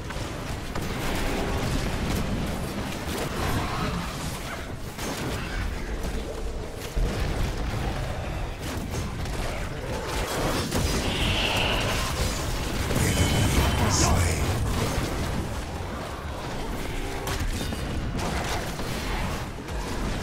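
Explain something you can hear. Game combat sound effects clash and crackle with blasts and hits.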